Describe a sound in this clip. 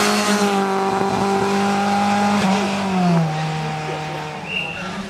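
A rally car engine roars past at high revs, dropping in pitch as it goes by.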